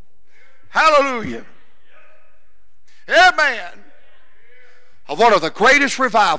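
A middle-aged man preaches with emphasis into a microphone, in bursts separated by pauses, in a large echoing hall.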